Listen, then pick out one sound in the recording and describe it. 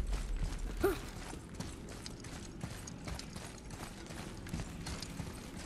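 Heavy footsteps tread on stone.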